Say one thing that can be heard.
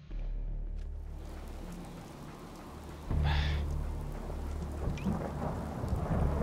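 Wind blows hard through a snowstorm.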